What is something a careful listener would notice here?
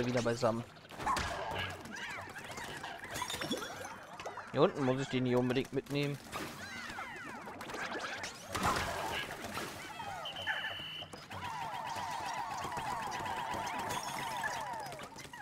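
Small creatures chirp and squeak in high voices.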